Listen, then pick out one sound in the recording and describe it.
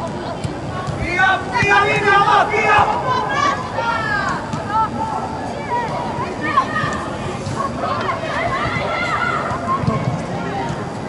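Young women shout to each other across a large echoing hall.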